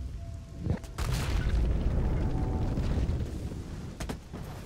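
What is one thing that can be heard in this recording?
A deep rumble of heavy stone crashes and crumbles.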